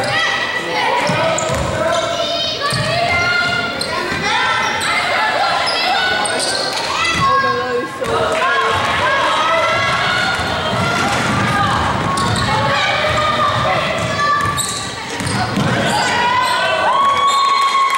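Sneakers squeak sharply on a hard floor, over and over.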